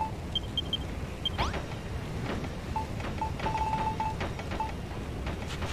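Short electronic menu beeps chime in quick succession.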